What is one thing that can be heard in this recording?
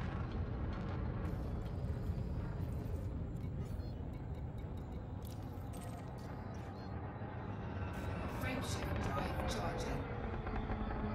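Short electronic beeps sound as menu items are picked.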